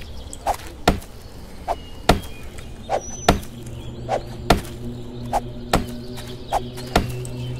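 A short swishing sound comes before each blow.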